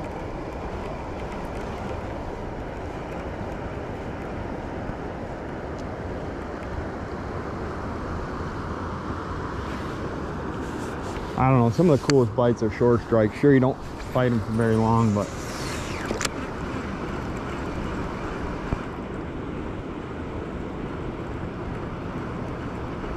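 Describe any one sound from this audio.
A river rushes steadily close by.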